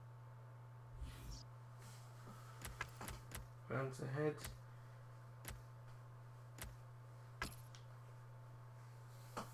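Short menu clicks and beeps sound now and then.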